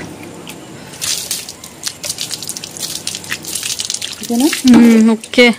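Water splashes onto hands and the ground.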